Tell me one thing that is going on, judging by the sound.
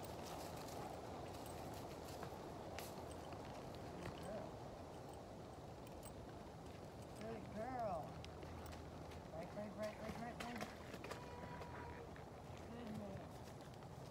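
A horse's hooves thud slowly on soft ground.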